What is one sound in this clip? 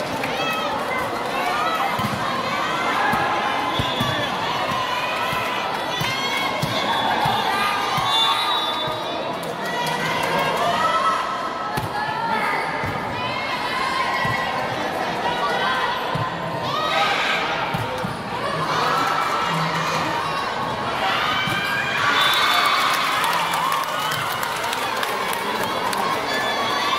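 Girls and young women shout and call out with animation across a large echoing hall.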